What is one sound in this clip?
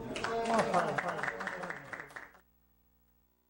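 Several men clap their hands in rhythm.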